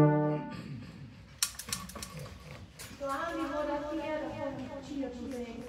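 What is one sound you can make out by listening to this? A small wind band plays together, with saxophones and brass holding notes.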